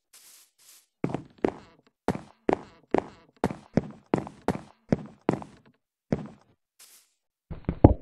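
Footsteps thud on wooden and stone blocks.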